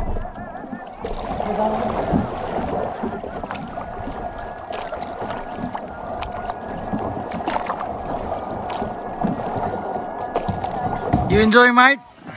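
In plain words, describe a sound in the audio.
Water swirls and splashes steadily around a kayak.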